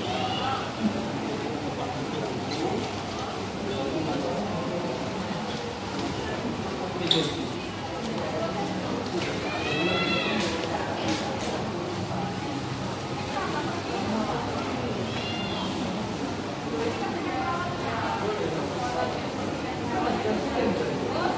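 A crowd of men and women murmur and chat in a large echoing hall.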